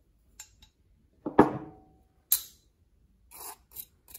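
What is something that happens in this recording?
Spices scrape onto a ceramic plate.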